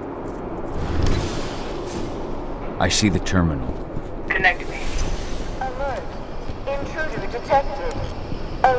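Glass and furniture shatter and crash as a fighter smashes through a room.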